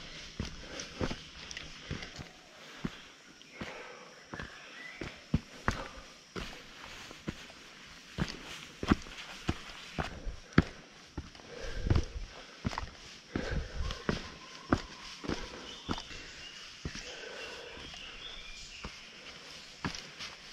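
Footsteps crunch on a dirt forest trail.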